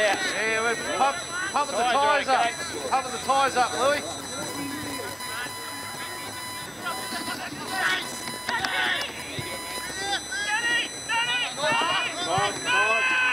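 Women shout and cheer excitedly close by.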